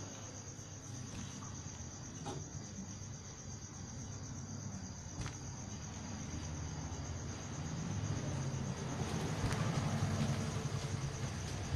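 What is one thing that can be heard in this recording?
Fingers rustle across stiff fabric.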